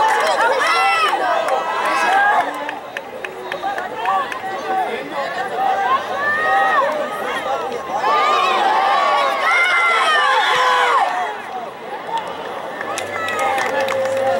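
A crowd of spectators shouts and cheers outdoors at a distance.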